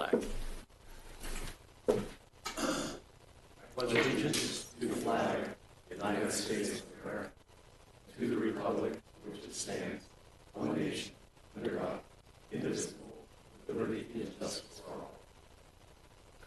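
A group of men and women recite together in unison, heard through a microphone.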